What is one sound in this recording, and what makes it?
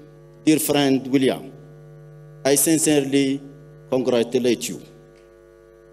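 A man speaks slowly and formally into a microphone, heard through loudspeakers in a large hall.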